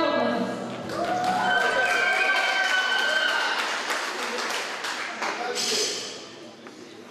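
A crowd claps in a large echoing hall.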